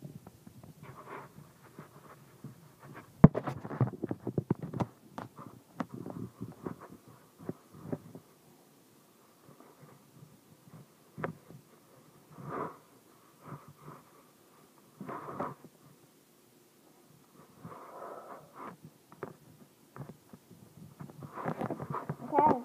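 A dog grumbles and whines up close.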